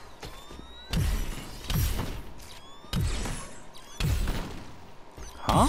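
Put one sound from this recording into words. Energy blasts fire with sharp booming bursts.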